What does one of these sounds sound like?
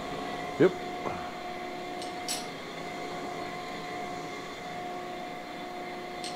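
A grinding machine hums steadily as a camshaft turns against the grinding wheel.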